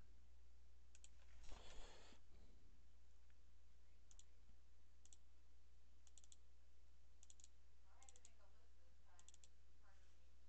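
A computer mouse clicks several times in quick pairs.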